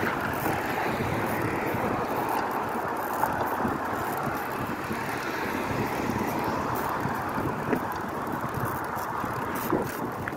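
Bicycle tyres roll and rattle over a paved path.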